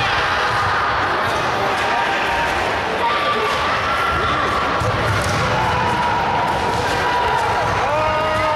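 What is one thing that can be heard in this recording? A large crowd murmurs and calls out in a big echoing hall.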